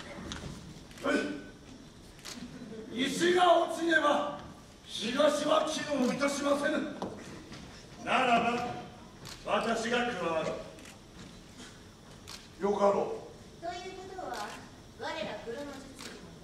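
A man speaks loudly and dramatically on a stage.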